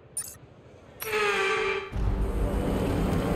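A loud whooshing swell with music rises and plays on.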